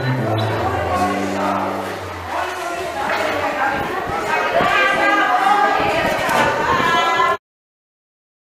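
Women and children chatter and talk nearby.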